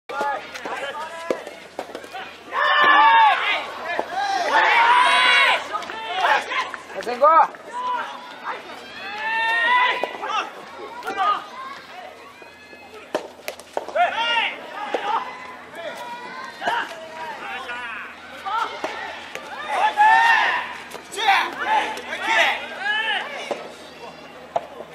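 Young men shout and cheer nearby, outdoors.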